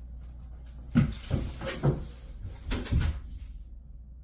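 Footsteps thud across a floor close by.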